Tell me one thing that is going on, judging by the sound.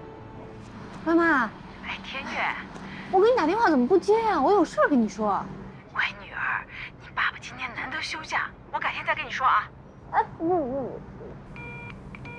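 A young woman talks anxiously on a phone, close by.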